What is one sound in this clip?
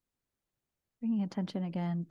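A woman speaks softly and calmly into a microphone.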